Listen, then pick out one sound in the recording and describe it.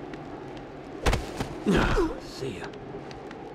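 A heavy body thuds in a short, violent scuffle.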